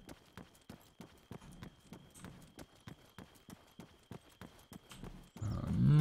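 Footsteps tread quickly and steadily on hard ground.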